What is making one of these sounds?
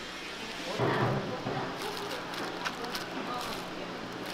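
Sliced onions drop softly into a bowl of noodles.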